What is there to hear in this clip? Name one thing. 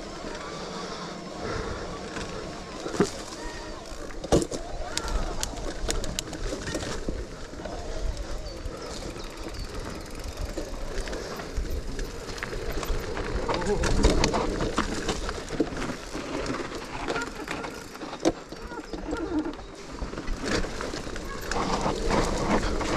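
Bike tyres roll and crunch over a dirt trail.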